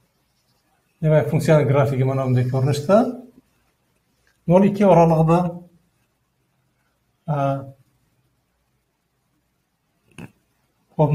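An elderly man explains calmly in short phrases, close by.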